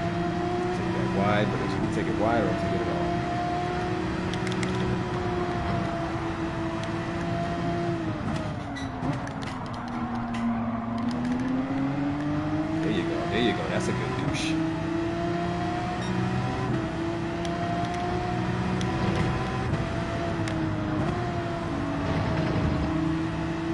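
A race car engine roars steadily, its pitch dropping as it slows for a corner and climbing again as it speeds up.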